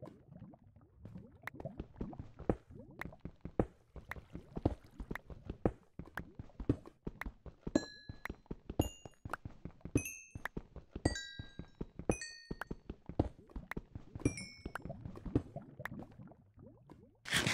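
A pickaxe chips rapidly at stone.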